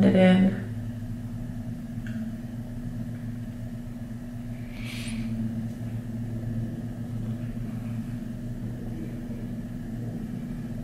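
A makeup sponge dabs softly against skin.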